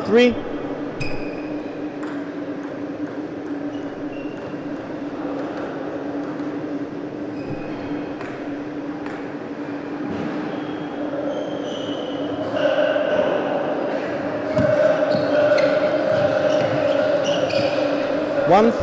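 A ping-pong ball clicks sharply back and forth off paddles and a table.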